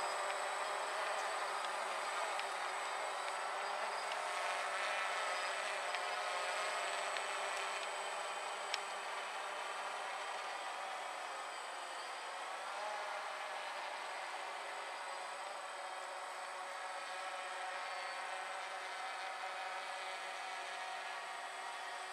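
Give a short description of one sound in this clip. A drone's rotors buzz steadily overhead.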